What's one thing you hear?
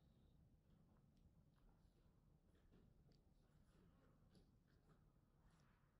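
Metal tweezers click and scrape faintly against skin.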